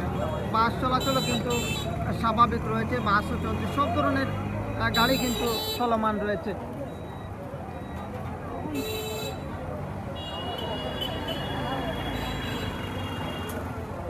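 Vehicle horns honk in short bursts now and then.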